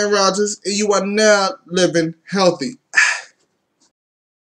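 A young man speaks with animation close to the microphone.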